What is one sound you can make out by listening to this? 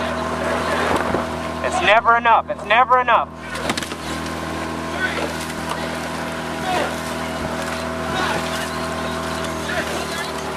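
Oars splash and churn the water in a steady rhythm.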